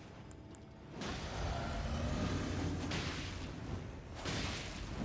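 A magical whoosh swells up as a summoning spell takes effect.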